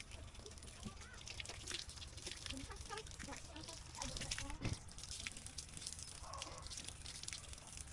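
Water runs from a tap and splashes.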